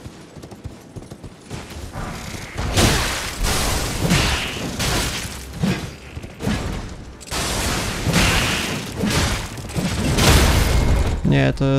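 Swords swing and strike in quick, sharp clashes.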